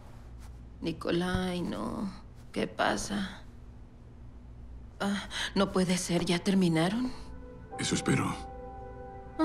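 A man speaks in a low, calm voice nearby.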